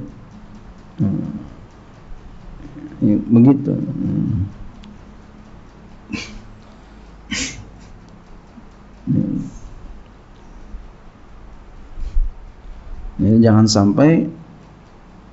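A man speaks slowly and calmly into a microphone, with long pauses.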